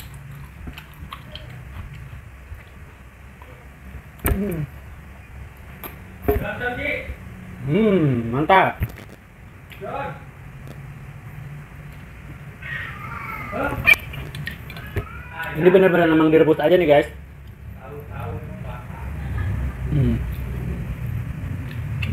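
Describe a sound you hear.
A man chews and bites noisily close up.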